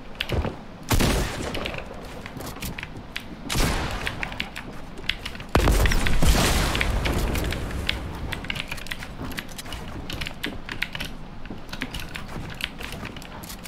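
Wooden building pieces clatter and thud into place.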